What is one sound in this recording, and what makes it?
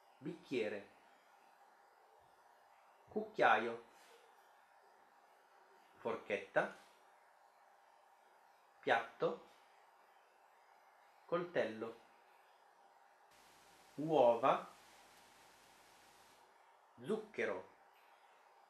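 A young woman speaks single words clearly and calmly into a close microphone, with pauses between them.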